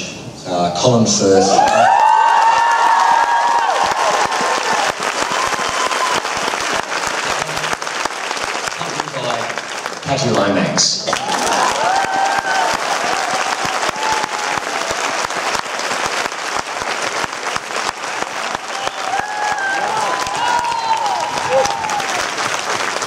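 People in the audience cheer and whoop.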